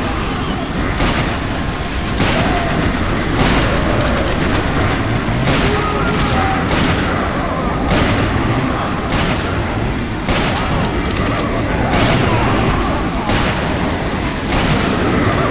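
Gunshots fire loudly at intervals.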